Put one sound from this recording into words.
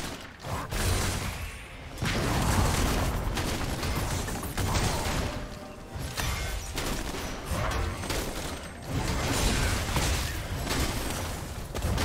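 Game spell effects whoosh and crackle in a busy fight.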